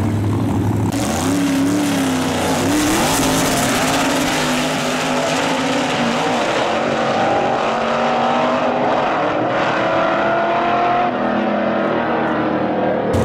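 A drag car engine roars as the car pulls away down the track.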